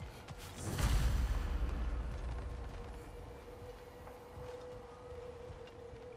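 Footsteps thud on wooden planks.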